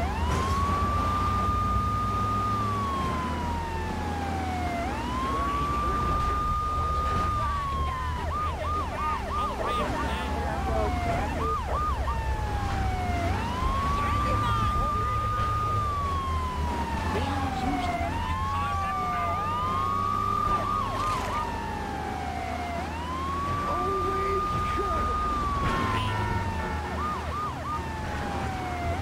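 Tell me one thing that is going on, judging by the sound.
A police siren wails in long rising and falling sweeps, with quick yelping bursts.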